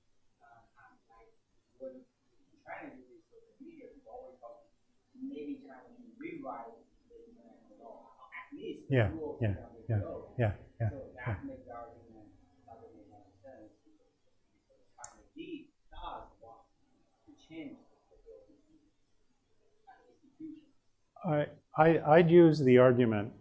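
A middle-aged man speaks to an audience through a microphone in a room with a slight echo, pausing often.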